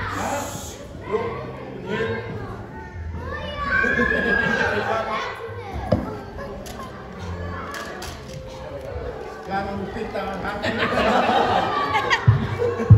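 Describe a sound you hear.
A man speaks with animation into a microphone, heard through loudspeakers in an echoing hall.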